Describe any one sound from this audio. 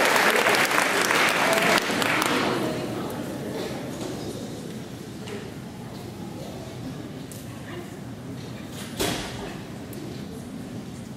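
Teenage girls talk and laugh softly into microphones in a large echoing hall.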